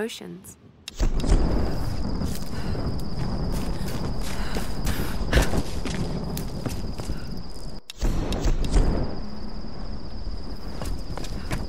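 Footsteps crunch over leaves and dirt.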